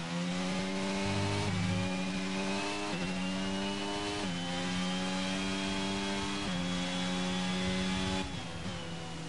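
A racing car engine screams loudly, rising in pitch and dropping briefly at each gear change.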